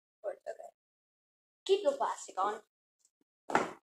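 Cardboard rustles as a box is opened.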